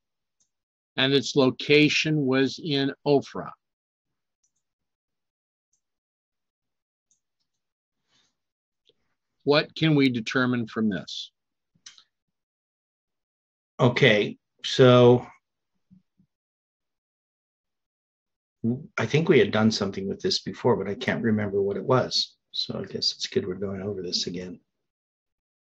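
An older man speaks calmly over an online call, in bursts with pauses.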